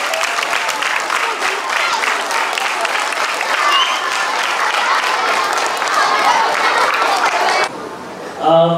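A large crowd of children chatters and cheers noisily.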